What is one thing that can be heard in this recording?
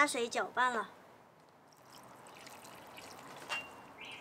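Water pours from a plastic basin and splashes onto dry soil.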